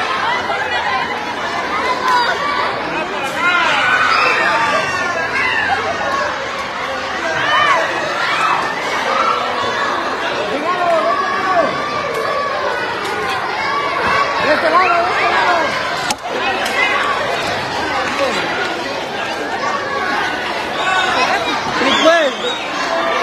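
A crowd of young children shout and squeal excitedly close by.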